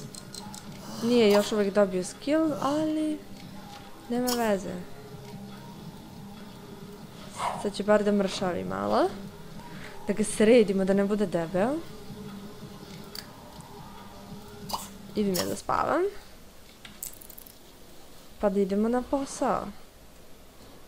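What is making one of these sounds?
A young woman talks with animation into a headset microphone, close up.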